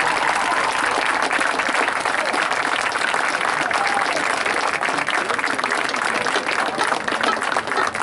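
A marching band plays outdoors in an open stadium.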